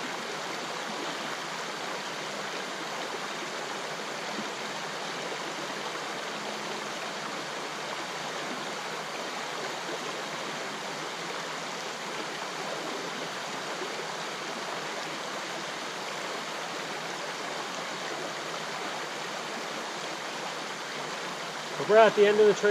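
A river flows steadily nearby.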